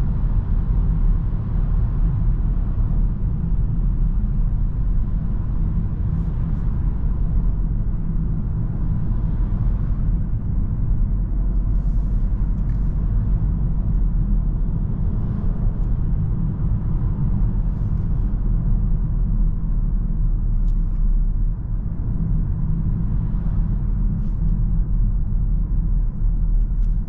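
Tyres roll with a low rumble on the road.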